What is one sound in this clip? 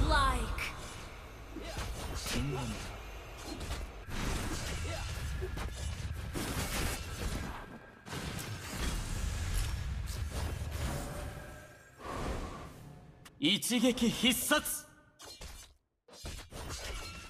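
Game spell effects blast and crackle during a fight.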